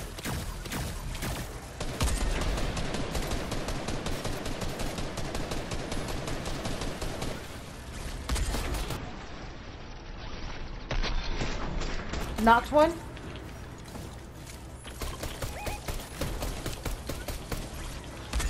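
Rapid gunfire crackles in short bursts.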